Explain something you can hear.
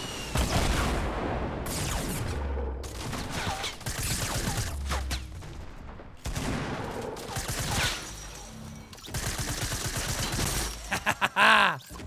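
Gunshots crack and boom in quick bursts.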